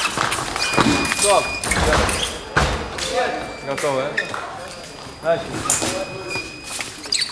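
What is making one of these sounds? Fencing shoes squeak and stamp on a hard floor in an echoing hall.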